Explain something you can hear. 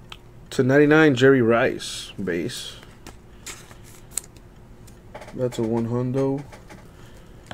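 Trading cards slide and tap against each other as they are handled.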